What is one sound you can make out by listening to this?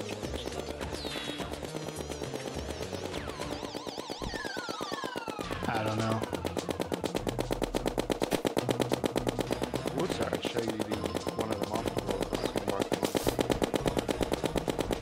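Video game music plays with a steady, quick beat.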